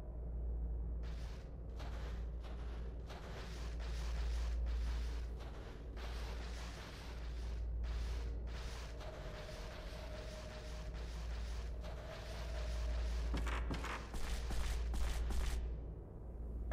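Footsteps tap across a wooden floor.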